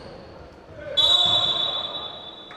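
A referee's whistle blows sharply.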